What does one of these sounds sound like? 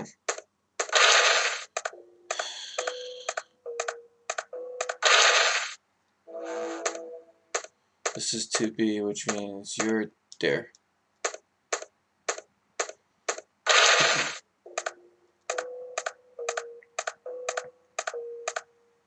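Footsteps tap quickly and evenly across a hard floor.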